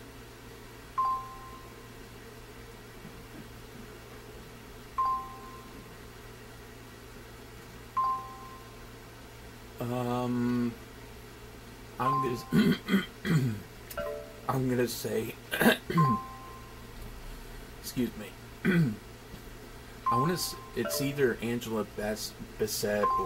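Short electronic beeps sound from a game as letters are picked.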